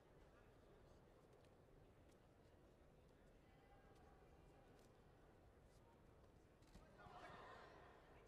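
Bare feet shuffle and thud on a mat.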